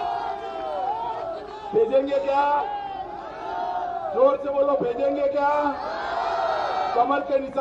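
A middle-aged man speaks forcefully into a microphone, heard through loudspeakers outdoors.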